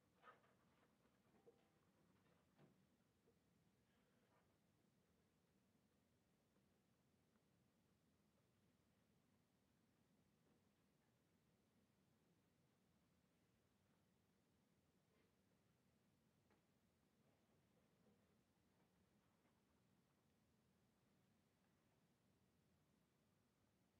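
A pencil scratches softly across paper in short strokes.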